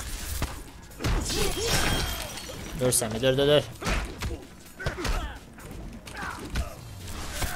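Punches and kicks land with heavy thuds in a video game fight.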